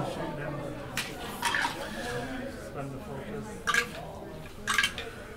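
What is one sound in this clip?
Small game pieces tap and click on a table.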